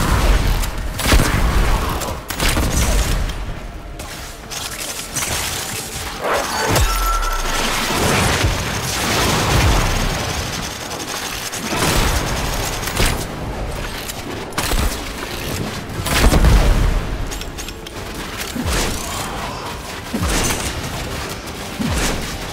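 Explosions boom and rumble over and over.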